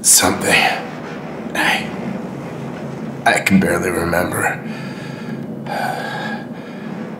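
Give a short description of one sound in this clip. A man groans and breathes heavily in pain.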